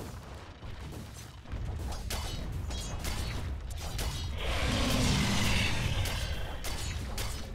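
Weapons strike with sharp, quick hits.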